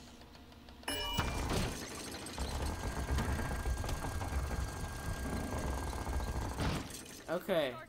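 A metal shutter door rumbles and rattles as it rolls open.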